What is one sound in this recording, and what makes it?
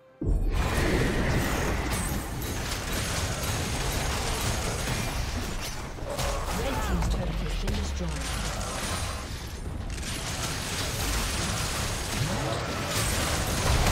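Video game spells and attacks crackle and boom in a busy fight.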